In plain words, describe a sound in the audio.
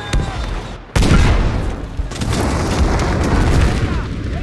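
A huge explosion booms and debris rains down.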